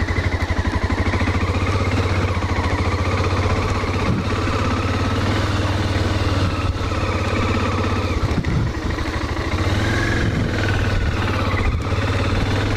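A motorcycle engine putters steadily up close.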